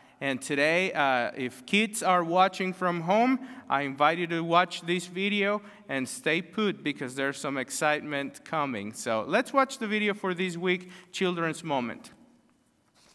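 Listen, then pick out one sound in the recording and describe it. A man speaks with animation into a microphone in a room with some echo.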